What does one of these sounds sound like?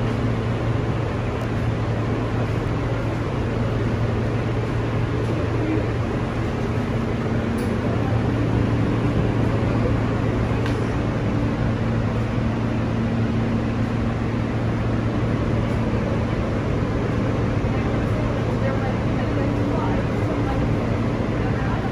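A train's motors hum steadily.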